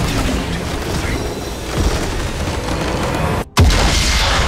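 Magic blasts and clashing weapons crackle in a loud fight.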